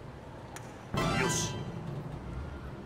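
A golf ball thuds onto a target panel.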